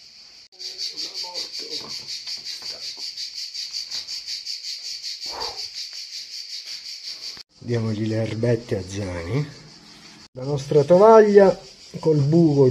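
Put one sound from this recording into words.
A man speaks close to the microphone, calmly and then with animation.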